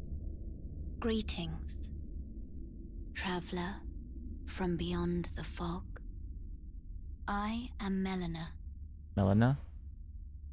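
A man speaks in short phrases through a headset microphone.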